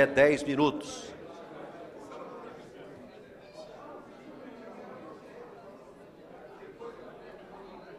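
Many people murmur and chat in a large room.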